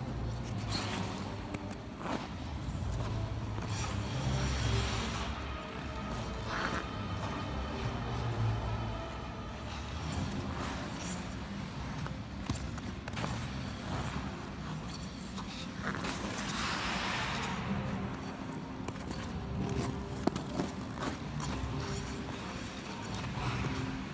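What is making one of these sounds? Ice skate blades glide and scrape across ice in a large echoing rink.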